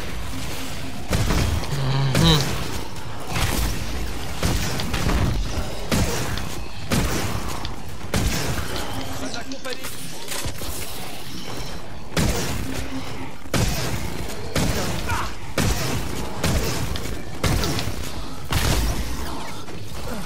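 A game weapon fires in loud, repeated blasts.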